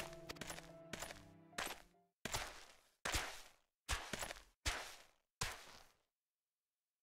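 A large bird's heavy footsteps thud in a steady rhythm.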